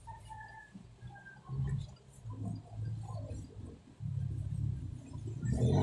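Scissors snip through hair close by.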